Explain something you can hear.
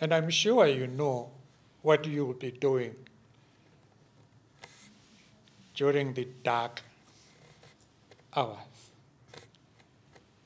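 An elderly man speaks calmly and slowly into a microphone, with pauses.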